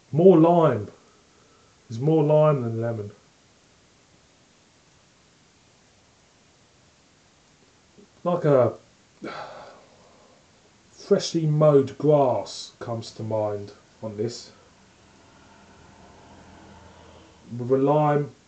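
A man speaks calmly and close by, pausing between phrases.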